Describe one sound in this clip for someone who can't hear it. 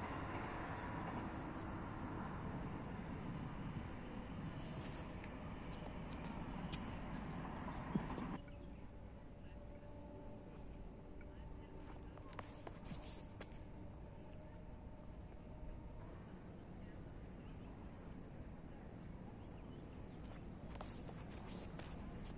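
Shoes scuff and grind on a concrete throwing circle.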